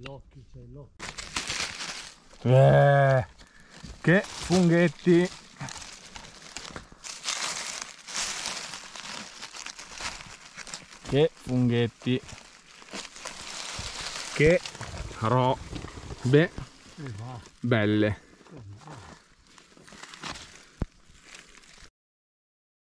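Dry leaves rustle and crackle as a hand reaches among them.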